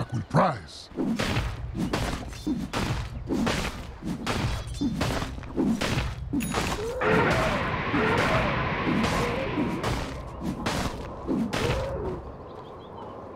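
Rapid clashing hits and magic blasts sound in a fast fight.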